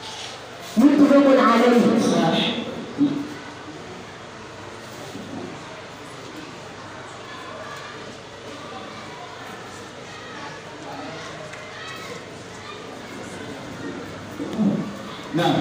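A boy recites into a microphone, heard through a loudspeaker in an echoing room.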